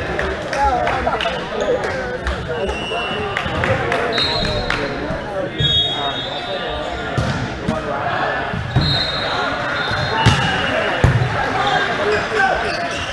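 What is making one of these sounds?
Several men talk and call out in a large echoing hall.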